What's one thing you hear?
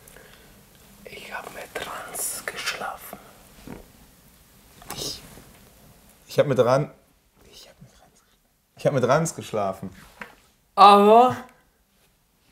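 A young man speaks quietly and hesitantly, close by.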